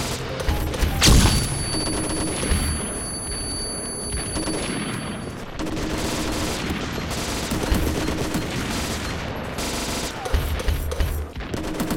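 Rifle shots boom, loud and sharp.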